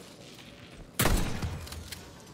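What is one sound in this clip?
A shotgun fires a single loud blast.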